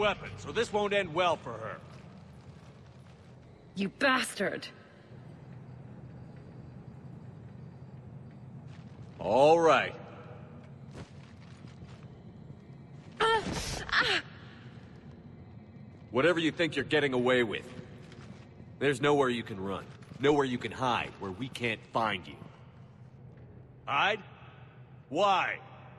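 A man speaks threateningly.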